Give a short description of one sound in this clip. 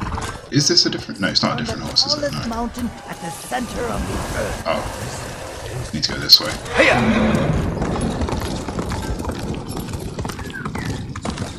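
Horse hooves thud on snowy ground at a gallop.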